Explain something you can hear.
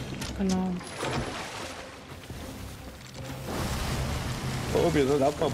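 Sea waves rush and splash.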